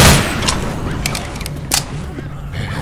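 A gun is reloaded with metallic clicks.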